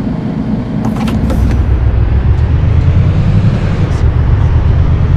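A bus engine revs up as the bus pulls away.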